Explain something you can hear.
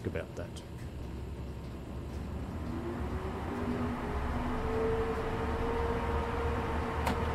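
An electric train's motor hums and whines, rising steadily in pitch as it speeds up.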